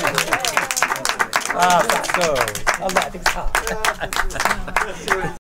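People clap their hands in time.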